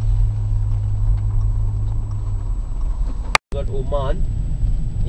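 A car engine hums low and steady from inside a moving car.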